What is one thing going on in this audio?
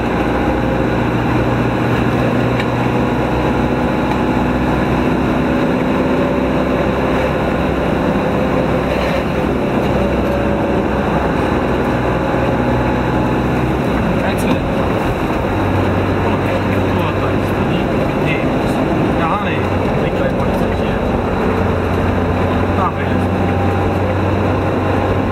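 A heavy vehicle's engine drones steadily as it drives along a road.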